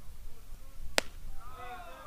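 A ball pops sharply into a catcher's mitt.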